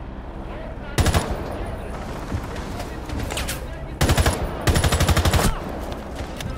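Gunshots crack loudly in short bursts.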